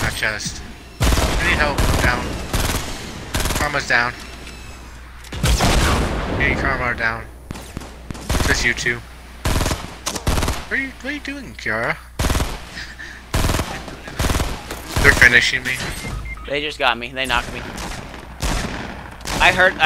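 A rifle fires sharp, loud shots again and again.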